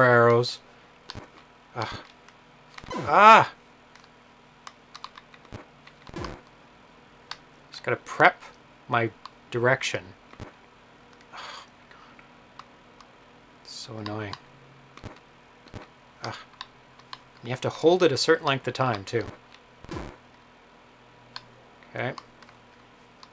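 Electronic video game sounds chirp and beep in short bursts.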